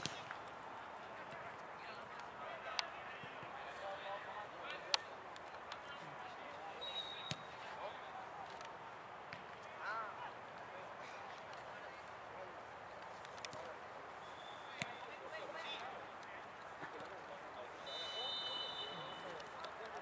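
Young men shout and call out outdoors.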